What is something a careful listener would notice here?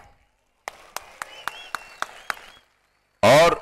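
A large crowd claps.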